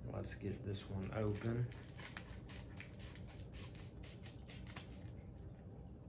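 A padded envelope crinkles as it is torn open.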